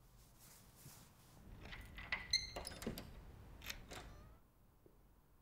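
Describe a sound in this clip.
A gas mask rustles and thumps as it is pulled on.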